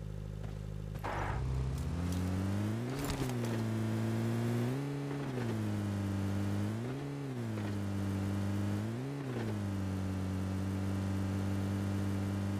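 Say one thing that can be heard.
A car engine starts and revs up and down.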